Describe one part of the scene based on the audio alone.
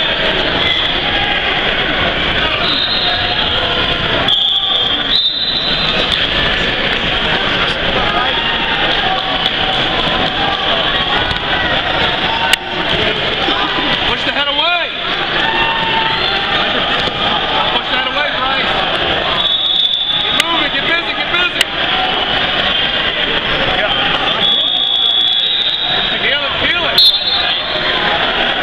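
A crowd chatters and calls out in a large echoing hall.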